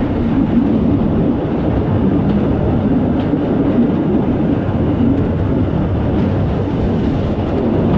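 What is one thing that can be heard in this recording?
A wooden wagon rattles and bumps along a track.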